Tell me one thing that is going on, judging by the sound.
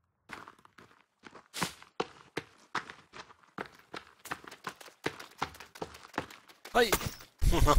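Footsteps tread over grass and dirt.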